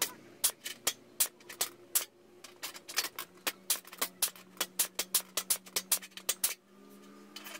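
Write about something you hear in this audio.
A pneumatic tool taps rapidly against sheet metal in short bursts.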